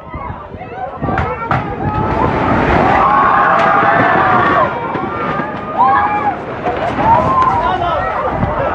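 People scream and shout in panic nearby.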